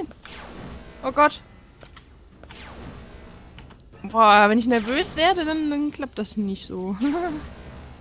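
Electronic laser beams zap and hum.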